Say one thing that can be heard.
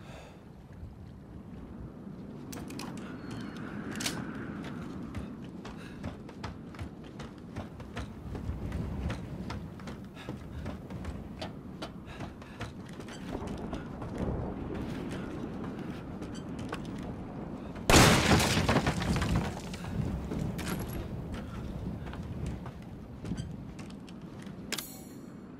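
Footsteps thud on creaking wooden boards.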